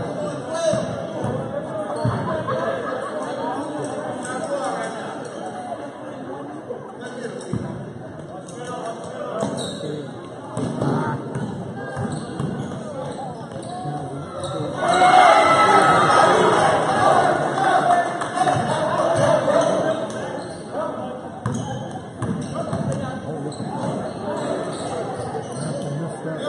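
Spectators chatter and cheer in a large echoing gym.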